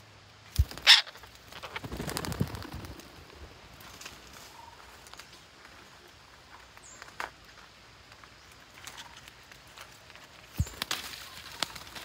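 A parrot flaps its wings in a quick flurry.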